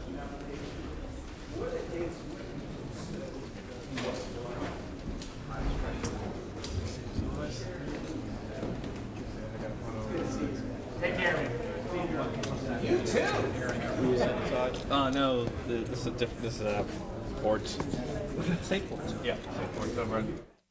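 A crowd of men and women chat in a room, with many voices overlapping.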